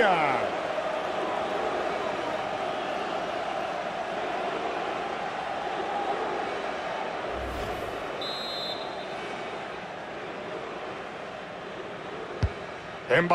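A large stadium crowd roars and cheers, loud at first and slowly dying down.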